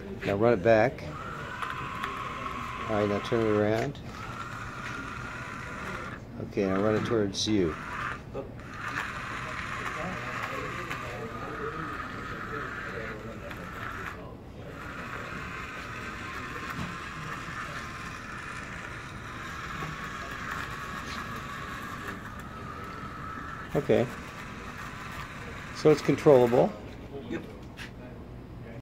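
A small toy motor whirs steadily.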